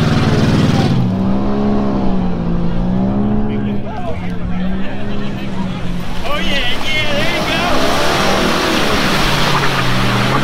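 An engine revs up and down as a car drives through mud.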